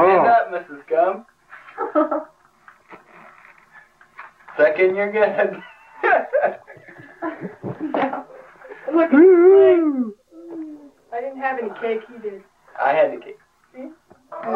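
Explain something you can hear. A young child speaks in a high voice nearby.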